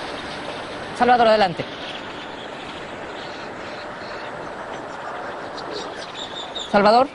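A man speaks briefly into a microphone outdoors.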